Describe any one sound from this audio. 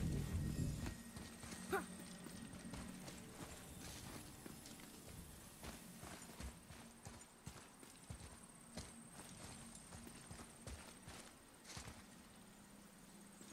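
Heavy footsteps thud steadily on stone.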